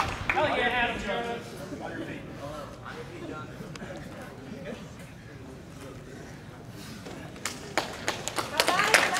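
A man explains calmly and loudly in a large echoing hall.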